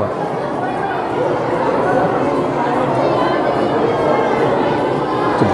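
A large crowd of men and women chatters and calls out, echoing in a rocky cave.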